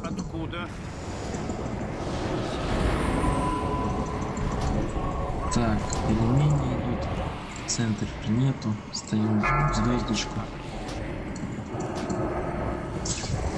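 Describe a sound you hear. Spell effects crackle and whoosh in a game battle.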